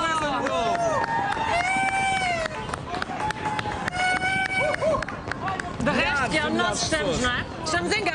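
Fireworks whistle as they shoot up into the sky.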